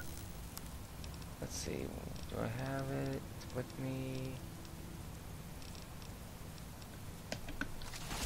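Electronic menu beeps and clicks sound.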